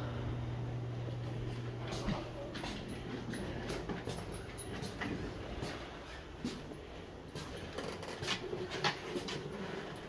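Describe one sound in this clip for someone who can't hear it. A dog's claws click on a wooden floor.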